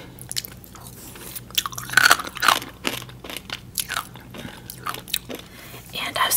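A woman chews and crunches food close to a microphone.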